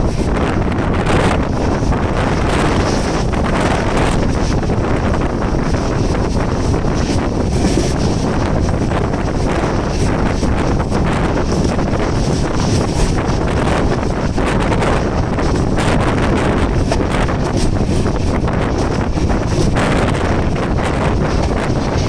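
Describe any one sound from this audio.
Wind rushes past a train's open window.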